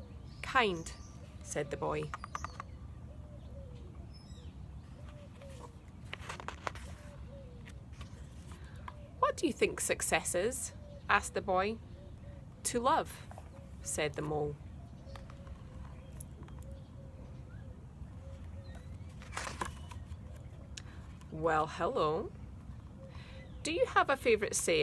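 A young woman talks calmly and close by, pausing often.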